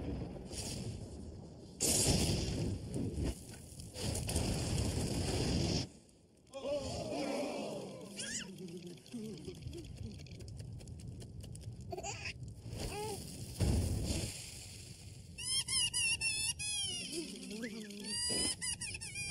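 Fireworks burst and crackle overhead.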